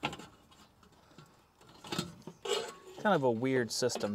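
A metal panel scrapes and clanks.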